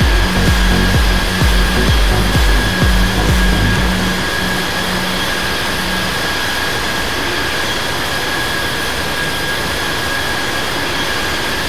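A jet airliner's engines roar steadily with a high whine.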